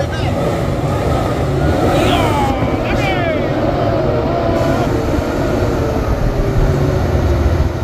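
A heavy truck's diesel engine rumbles loudly as it climbs slowly toward the listener.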